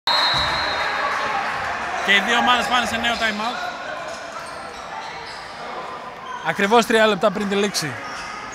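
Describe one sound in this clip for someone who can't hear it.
A crowd murmurs and calls out in an echoing indoor hall.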